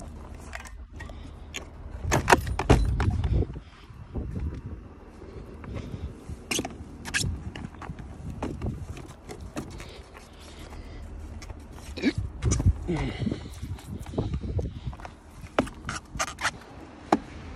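A metal ladder clunks and rattles as it is handled.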